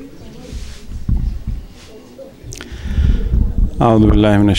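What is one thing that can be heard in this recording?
A man speaks into a microphone, his voice carried over loudspeakers in an echoing hall.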